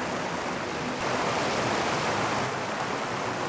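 Water splashes loudly as a fish is released.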